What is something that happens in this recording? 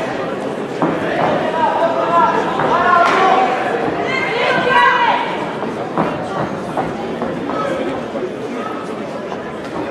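Punches thud against gloves and bodies.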